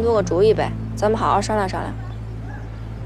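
A young woman speaks with concern.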